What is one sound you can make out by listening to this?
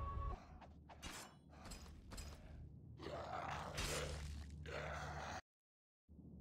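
A man talks close to a microphone with animation.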